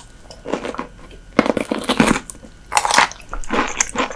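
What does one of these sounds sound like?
A young woman bites into something crisp with a loud crunch.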